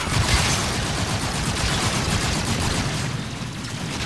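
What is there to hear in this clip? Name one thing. An electric charge crackles and buzzes loudly.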